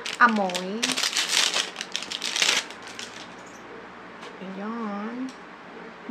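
A young woman speaks close to a microphone in a sing-song, animated voice.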